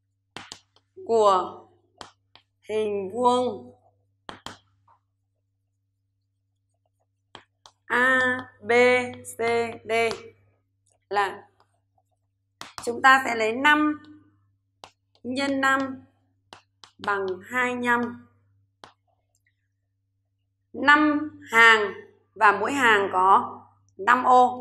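A woman speaks calmly and clearly into a close microphone, in short phrases.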